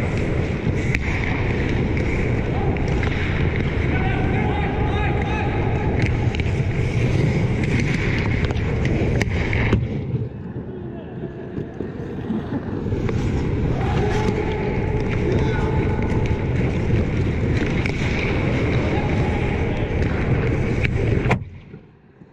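A puck cracks off a hockey stick.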